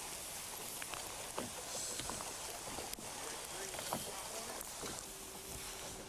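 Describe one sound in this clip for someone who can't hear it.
River water rushes and splashes nearby.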